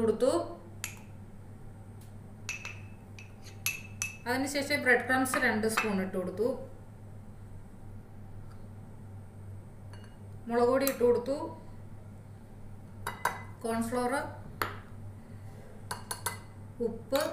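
A metal spoon clinks and scrapes against a glass bowl.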